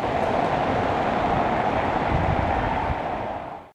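A motor scooter rides by.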